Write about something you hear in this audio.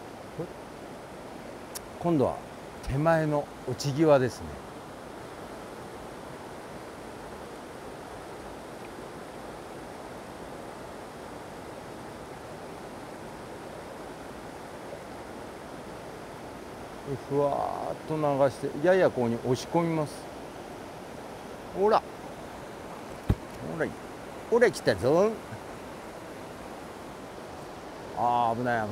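A shallow river flows and babbles steadily over stones.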